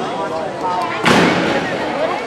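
A gymnast lands with a thud on a sprung floor in a large echoing hall.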